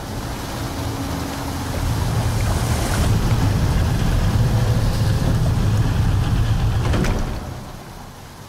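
A heavy stone door grinds and rumbles as it rolls open.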